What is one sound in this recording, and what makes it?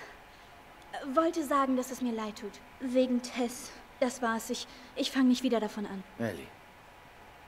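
A girl speaks softly in game dialogue.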